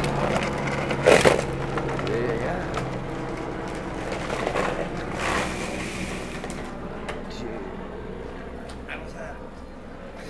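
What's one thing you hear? The hard plastic wheels of a drift trike roll and scrape on asphalt.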